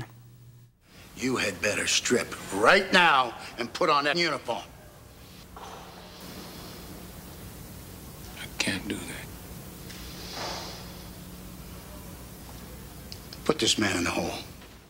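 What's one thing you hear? A middle-aged man speaks firmly and tensely, close by.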